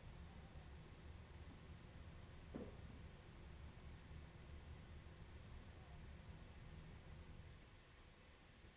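Synthesizers play a low throbbing drone.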